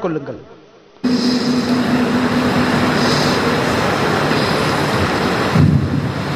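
A man speaks into a microphone, heard through loudspeakers with a noisy echo.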